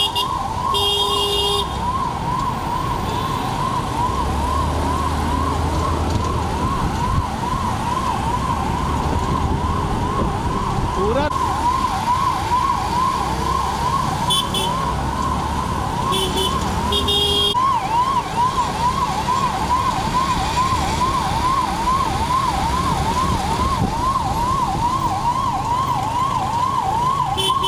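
An ambulance siren wails rapidly up and down close by.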